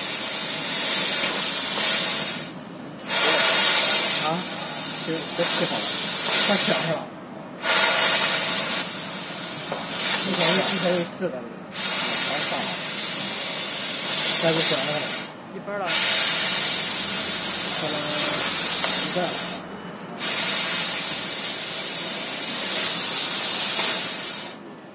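A laser cutter hisses as it cuts, with a steady rush of air.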